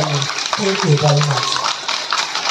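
A young girl sings through loudspeakers.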